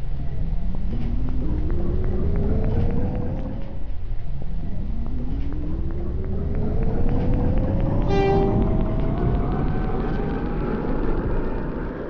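A subway train's electric motors whine, rising steadily in pitch.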